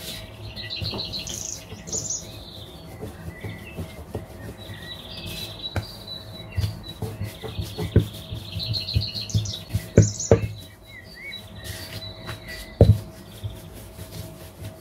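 A rolling pin rolls and thumps on a wooden board.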